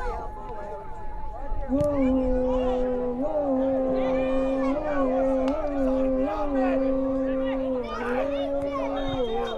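Men shout across an open field.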